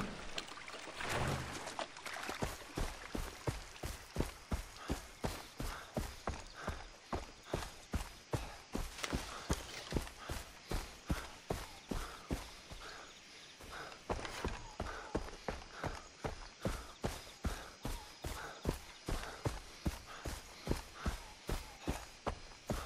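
Footsteps thud steadily on grass and dirt.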